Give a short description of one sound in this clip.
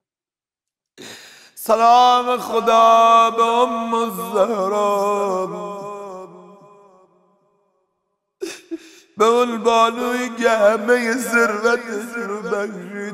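A man chants in a mournful, drawn-out voice through a microphone.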